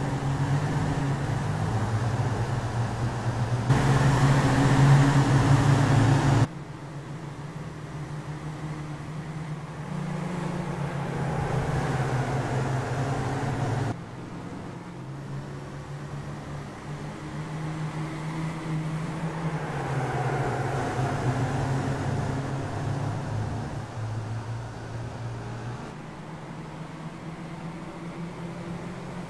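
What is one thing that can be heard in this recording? Racing car engines drone and whine steadily, rising and falling in pitch.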